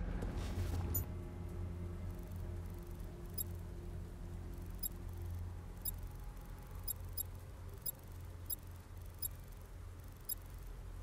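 Soft electronic clicks tick at uneven intervals.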